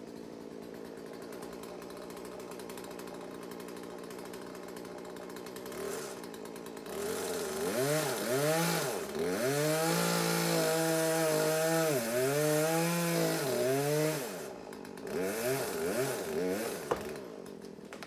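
A chainsaw idles and then revs up and down.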